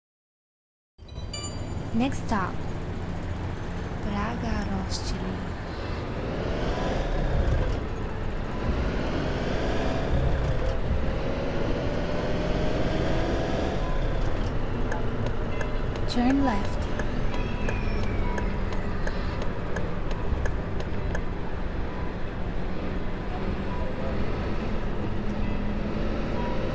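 Bus tyres roll over the road.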